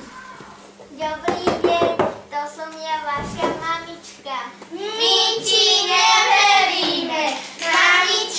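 A group of young children shout and laugh loudly close by.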